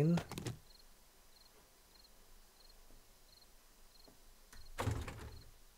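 A man speaks briefly into a microphone in a calm voice.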